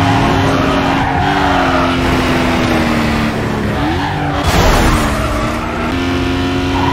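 Tyres screech as a car drifts through turns.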